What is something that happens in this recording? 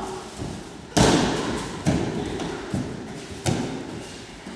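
Bodies thud heavily onto padded mats in a large echoing hall.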